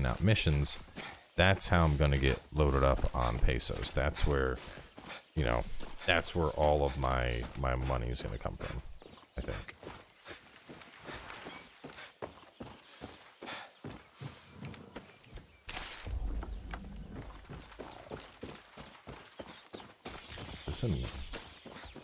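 Footsteps crunch steadily over ground.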